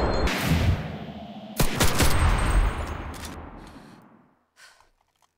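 A heavy machine gun fires loud bursts that boom and fade.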